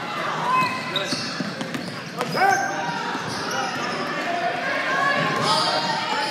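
A basketball bounces on a hard floor in an echoing gym.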